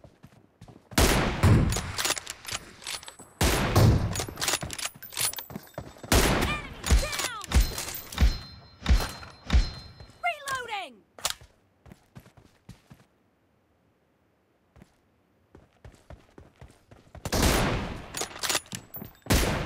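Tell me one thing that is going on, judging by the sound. Gunshots fire in loud rapid bursts.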